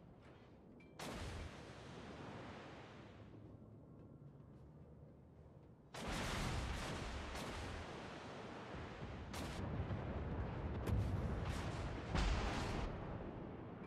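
Heavy guns fire with loud, deep booms.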